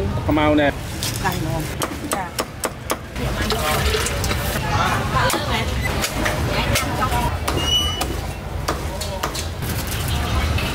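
A cleaver chops through meat with sharp knocks.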